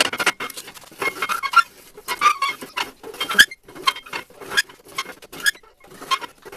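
A hand-cranked ring roller bends a steel rod, with metal grinding and clicking.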